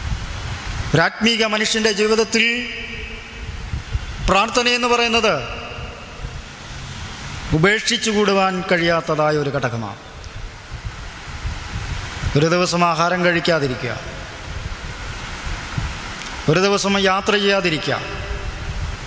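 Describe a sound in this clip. A young man speaks slowly and calmly into a microphone, in short phrases with pauses.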